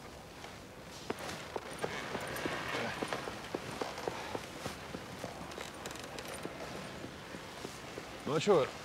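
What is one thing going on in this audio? A sled's runners scrape over snow.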